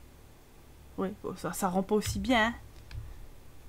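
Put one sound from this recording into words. A young woman speaks briefly and with animation into a close microphone.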